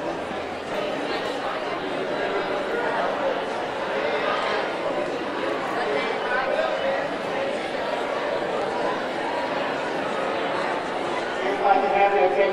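A crowd murmurs and chatters in a large room.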